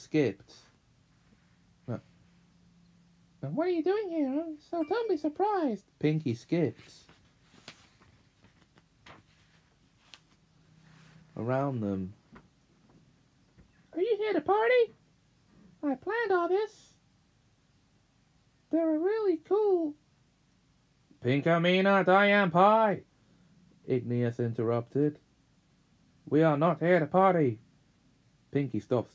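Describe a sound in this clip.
A young man reads aloud close by, with expressive, sing-song phrasing.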